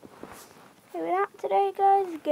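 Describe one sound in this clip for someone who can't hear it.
A pig grunts close by.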